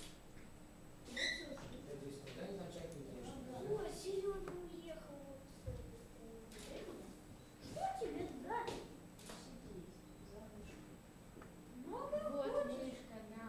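Young boys talk and chatter nearby.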